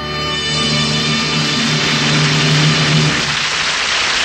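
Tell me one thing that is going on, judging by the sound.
An old radio hums loudly with a low tone.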